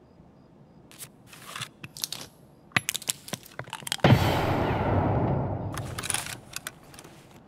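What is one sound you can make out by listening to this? Metal clicks and rattles as a rifle is handled.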